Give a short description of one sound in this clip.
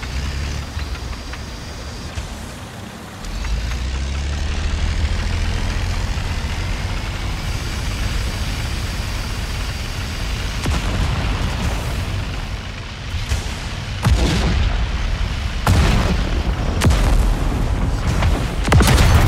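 A tank engine rumbles low and steady as tracks clank.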